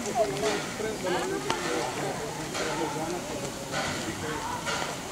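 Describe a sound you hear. A steam locomotive puffs and hisses steam.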